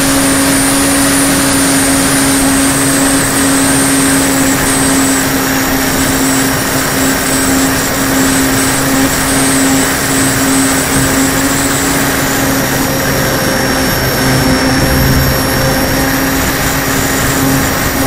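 Wind rushes past the model plane in flight.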